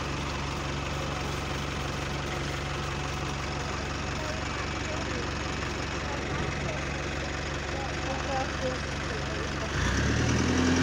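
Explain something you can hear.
A bus engine idles nearby with a steady low rumble.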